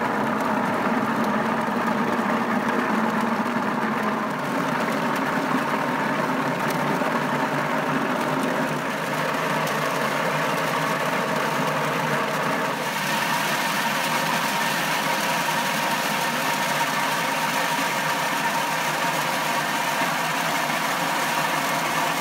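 Walnuts tumble and rattle inside a spinning drum.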